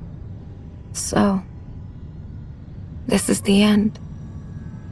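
A young woman speaks softly and wearily, close to a microphone.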